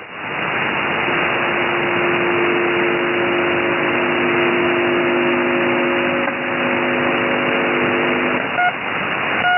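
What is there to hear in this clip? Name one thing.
A radio receiver gives out steady humming tones.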